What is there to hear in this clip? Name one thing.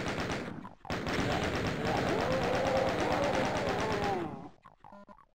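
Monsters roar and groan in pain.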